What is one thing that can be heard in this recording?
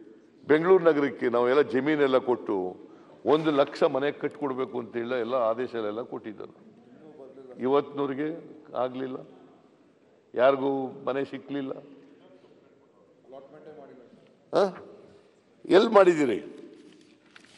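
An elderly man speaks with animation into a microphone in a large echoing hall.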